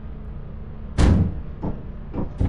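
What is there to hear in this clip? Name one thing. A metal door slides shut with a thud.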